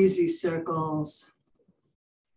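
An older woman speaks calmly through an online call.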